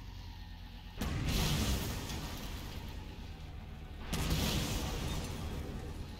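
A blast bursts loudly and rumbles away.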